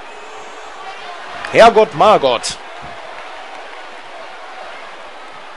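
A large crowd murmurs and cheers steadily in a big arena.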